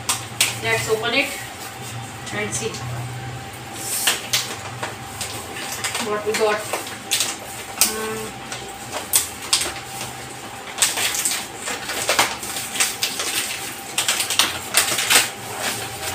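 Plastic packaging crinkles and rustles in a young woman's hands.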